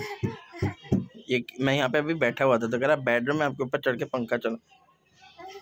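A small child babbles and talks excitedly close by.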